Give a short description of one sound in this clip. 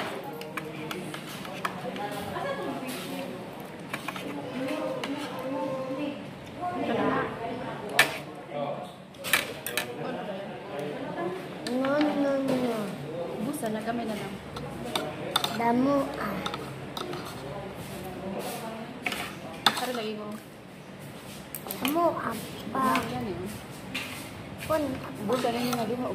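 Metal cutlery clinks and scrapes on a plate.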